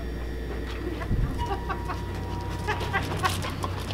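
A glass door opens with a click and a thud.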